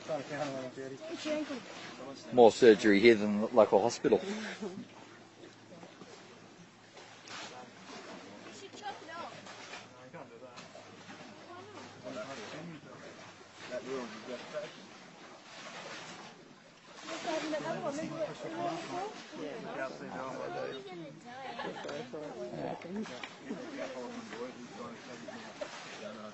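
A man talks quietly up close.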